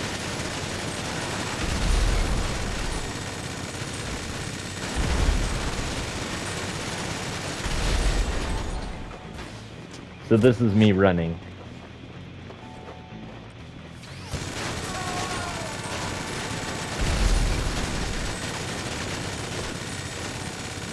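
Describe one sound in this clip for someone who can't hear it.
A rapid-firing machine gun roars in long bursts.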